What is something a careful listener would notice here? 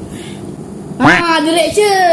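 A young boy exclaims loudly and close by.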